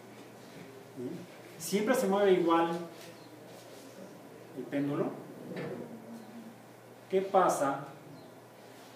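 A man speaks calmly in short bursts.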